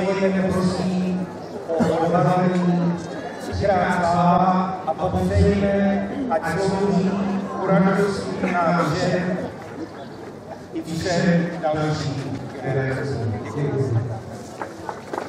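An elderly man speaks steadily through a microphone and loudspeaker outdoors.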